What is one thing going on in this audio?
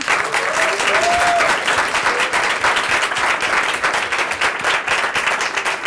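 An audience applauds steadily in a room.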